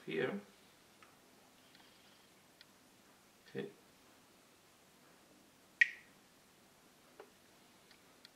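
Small plastic pieces click and tap softly as fingers handle them.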